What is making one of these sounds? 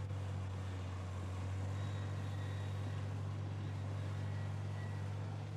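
A bulldozer engine rumbles steadily nearby.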